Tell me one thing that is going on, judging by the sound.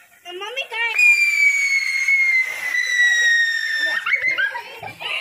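A firework whistles shrilly with a slowly falling pitch.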